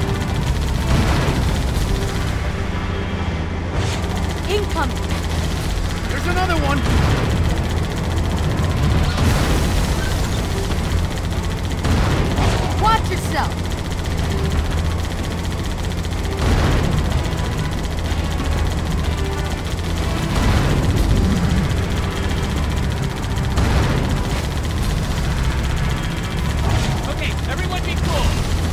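Explosions boom in bursts around the tank.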